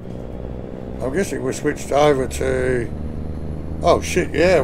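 A middle-aged man speaks with animation into a close microphone.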